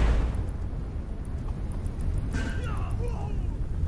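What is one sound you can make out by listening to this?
A dragon breathes fire with a roaring whoosh.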